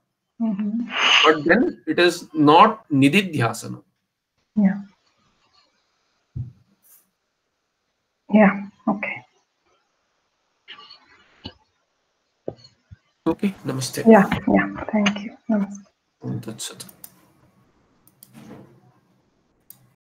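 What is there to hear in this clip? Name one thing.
A middle-aged woman speaks calmly over an online call, with short pauses.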